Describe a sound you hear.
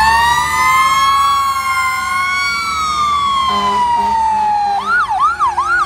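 A fire truck siren wails loudly and slowly winds down.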